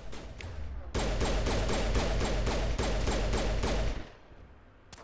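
A rifle fires in a rapid burst.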